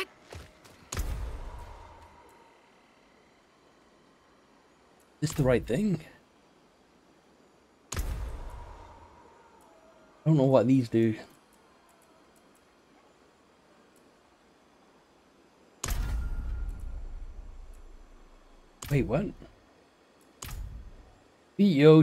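Menu sounds chime and whoosh as windows open and close.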